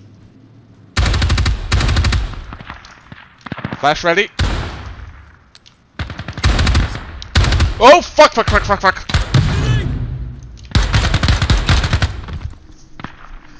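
A rifle fires rapid bursts of shots close by.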